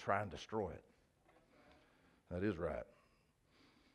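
A man speaks with emphasis through a headset microphone, pausing between short phrases.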